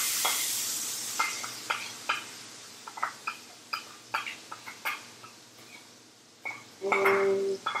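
Hot oil sizzles and crackles in a pan.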